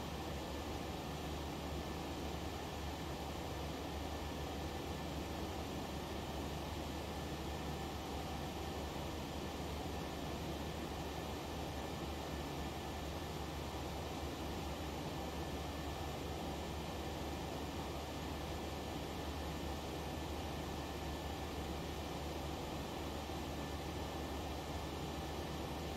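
Steady air rushes past the cockpit.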